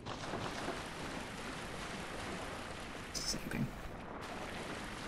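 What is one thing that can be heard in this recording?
A young woman talks calmly into a microphone.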